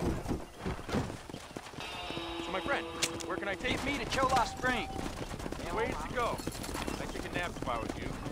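Horse hooves clop on dirt.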